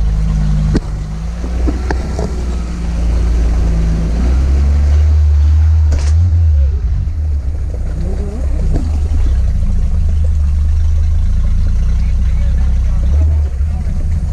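Tyres churn and splash through muddy water.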